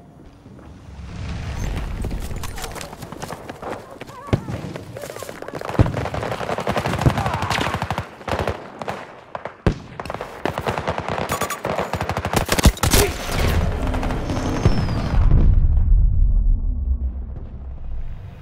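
A low rumble of explosions rolls on.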